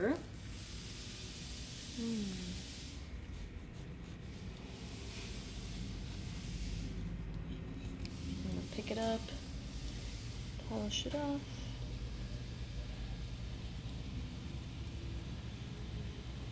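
A cloth rubs and squeaks on glass.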